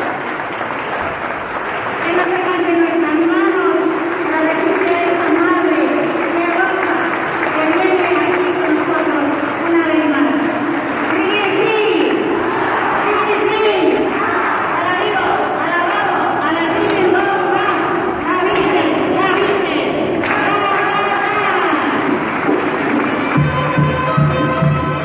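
A crowd of men and women sings together in a large echoing hall.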